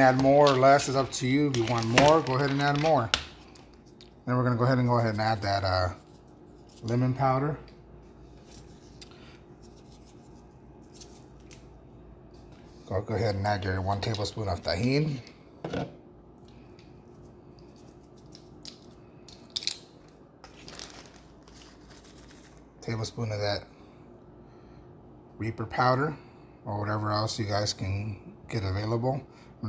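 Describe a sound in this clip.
A spatula stirs dry peanuts in a bowl, which rattle and scrape.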